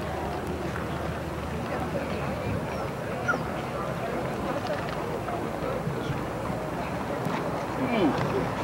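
A horse's hooves thud on grass.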